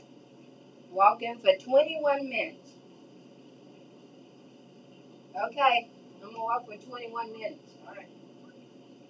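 A woman speaks loudly nearby in short bursts.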